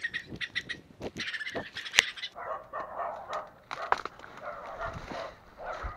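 Leaves and stems rustle as a hand pushes through plants.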